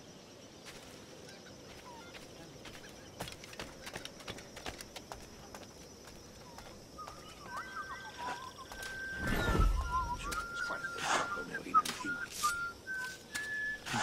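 Footsteps crunch on sand and dirt.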